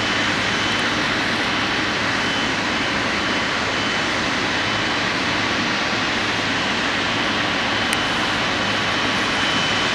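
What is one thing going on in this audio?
A jet engine roars steadily as a large plane taxis slowly.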